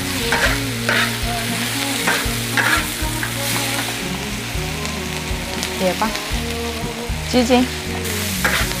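Food sizzles in hot oil.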